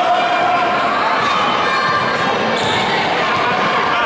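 A basketball bounces on a court.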